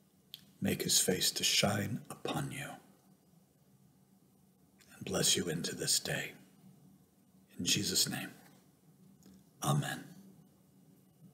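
An older man speaks calmly in short bursts, close to a microphone.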